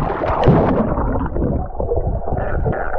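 Bubbles gurgle underwater.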